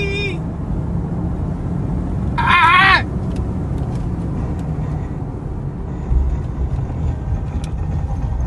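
A car drives along with a steady low rumble of engine and road noise.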